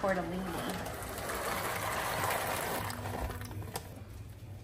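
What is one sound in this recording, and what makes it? Dry pasta pours into bubbling boiling water.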